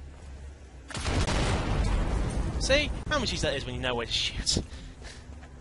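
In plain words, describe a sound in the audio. A loud explosion booms and rumbles in a large echoing hall.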